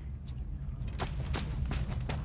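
Footsteps crunch on dry undergrowth.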